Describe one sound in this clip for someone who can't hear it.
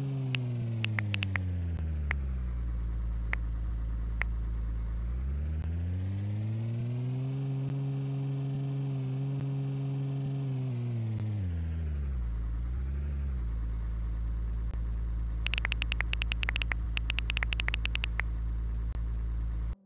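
Key clicks tap out on a tablet keyboard.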